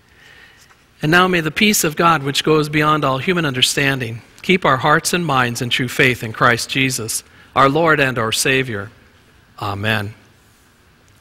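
A middle-aged man reads out calmly through a microphone in an echoing hall.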